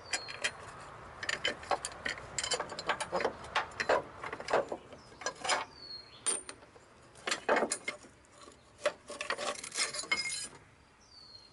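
Plastic and metal engine parts click and rattle under hands.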